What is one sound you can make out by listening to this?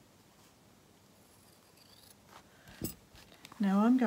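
Scissors snip a thread.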